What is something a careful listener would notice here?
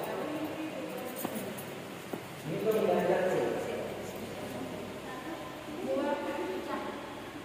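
A man speaks to a group in a large echoing hall.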